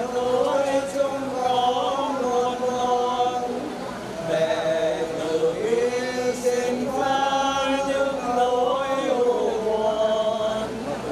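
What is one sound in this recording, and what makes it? A man chants a slow, mournful melody.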